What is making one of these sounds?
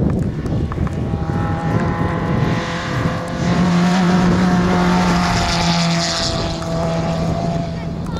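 Tyres crunch and spray on a gravel road.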